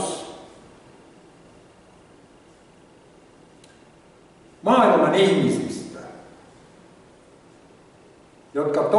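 An elderly man speaks calmly into a microphone, in a room with some echo.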